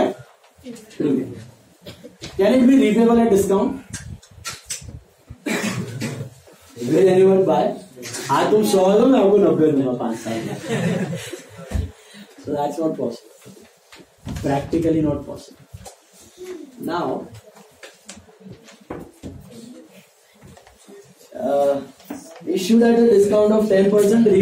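A man lectures with animation, close by.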